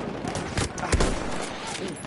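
A rifle shot cracks.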